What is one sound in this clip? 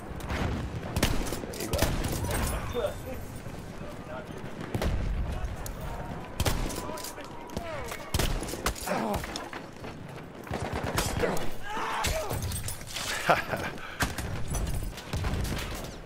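A pump-action shotgun fires several blasts.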